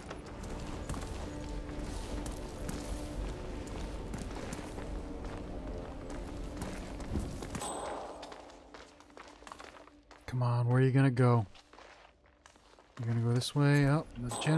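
Footsteps climb a stone staircase.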